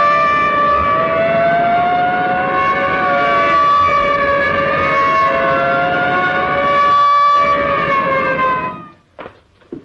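A car engine hums.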